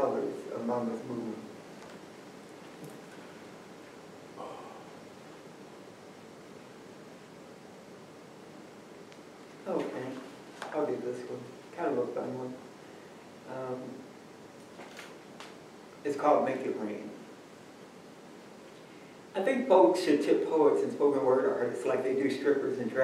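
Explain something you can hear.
A man reads aloud from a book in a calm, expressive voice, close by.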